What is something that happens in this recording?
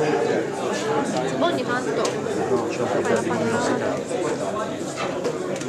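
People in an audience murmur and chatter quietly.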